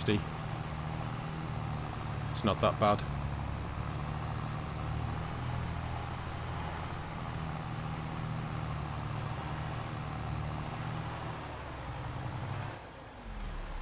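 A tractor engine rumbles steadily as the tractor drives along.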